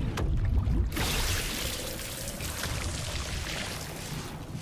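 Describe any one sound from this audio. A glittering burst of magic hisses and fizzes.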